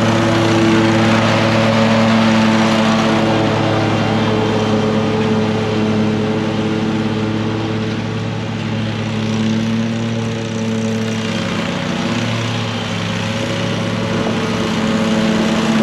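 A ride-on mower engine drones steadily, fading as it moves away and growing louder as it returns.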